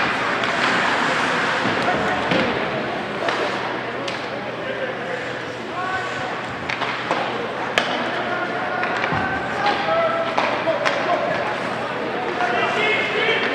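Ice skates scrape and carve on ice in an echoing indoor rink.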